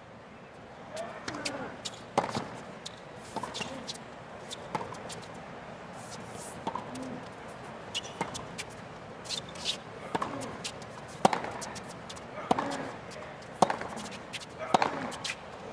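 Tennis balls are struck with rackets in a long rally, with sharp pops back and forth.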